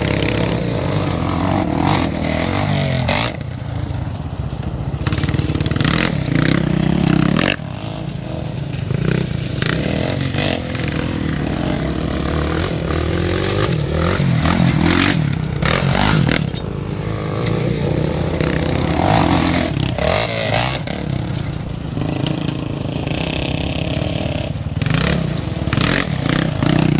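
A quad bike engine revs loudly, rising and falling as it races over gravel.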